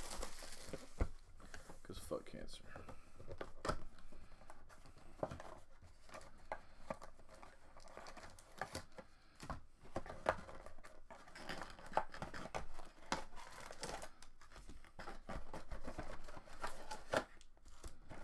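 A cardboard box scrapes and taps as it is opened.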